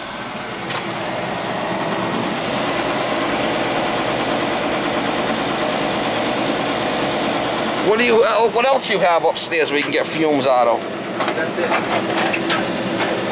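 A gas appliance roars steadily with a low hum.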